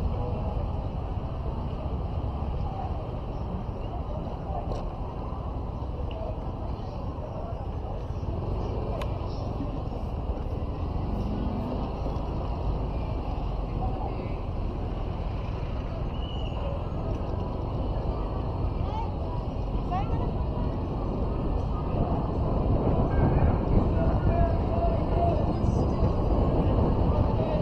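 Traffic hums steadily along a busy street outdoors.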